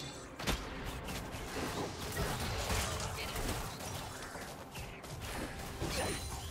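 Magic blasts and weapon strikes clash rapidly in a fantasy battle.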